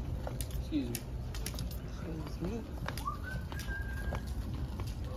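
A shopping cart's wire frame clicks and clatters.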